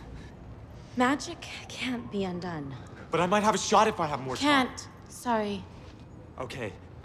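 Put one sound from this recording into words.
A young woman speaks with emotion close by.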